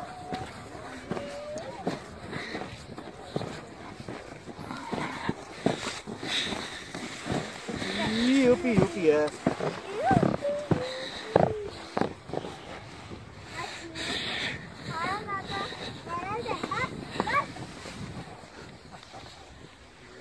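A snowboard scrapes and hisses over packed snow.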